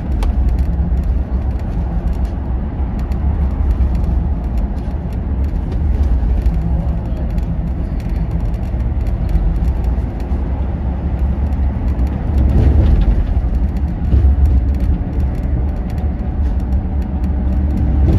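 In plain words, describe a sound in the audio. A vehicle's engine rumbles steadily at speed from inside the cab.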